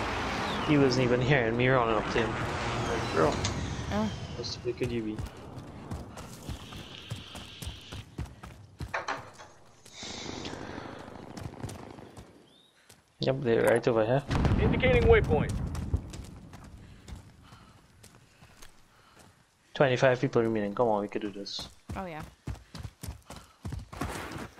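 Footsteps thud quickly on grass and dirt.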